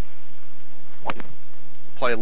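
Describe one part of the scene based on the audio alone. A golf club taps a ball once.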